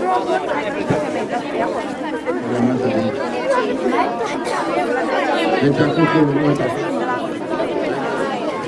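A crowd of adults and children chatters outdoors.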